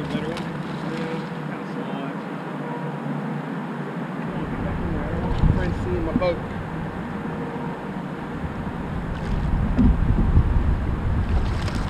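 Water laps against a kayak's hull.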